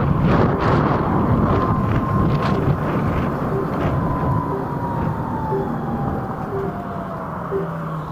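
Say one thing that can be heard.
An electric scooter motor whines and drops in pitch as it slows.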